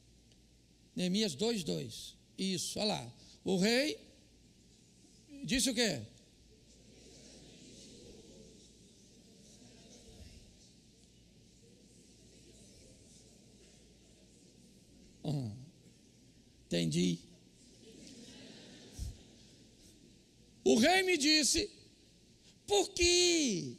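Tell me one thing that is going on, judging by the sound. An elderly man speaks through a microphone with long pauses, in a large echoing hall.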